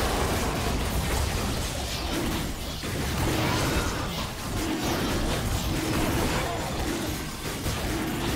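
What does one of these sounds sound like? Spell effects crackle and blast in a fast game fight.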